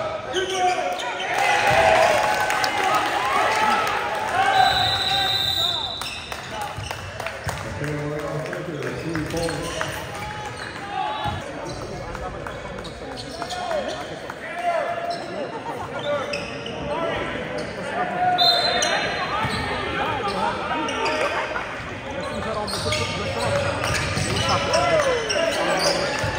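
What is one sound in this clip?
A crowd of people talks and shouts throughout a large echoing gym.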